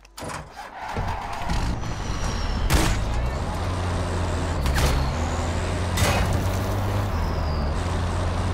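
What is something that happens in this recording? A truck engine rumbles steadily as the truck drives.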